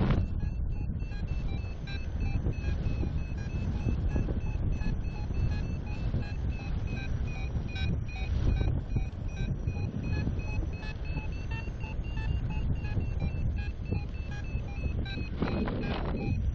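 Strong wind rushes and buffets high in the air.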